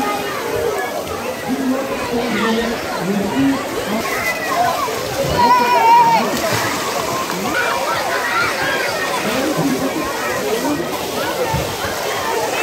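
Water splashes as swimmers play.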